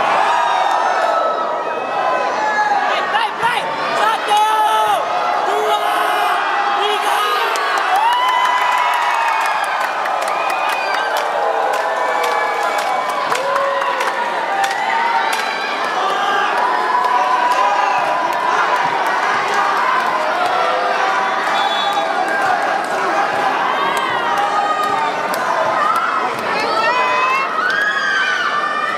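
A large crowd cheers and chatters loudly in an echoing hall.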